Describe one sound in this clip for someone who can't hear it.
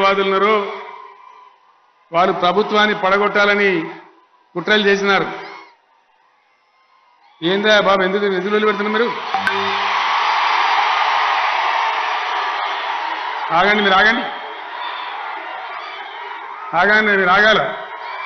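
An elderly man speaks forcefully through a loudspeaker, echoing outdoors.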